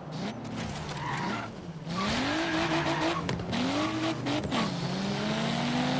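A sports car engine blips as it downshifts under braking.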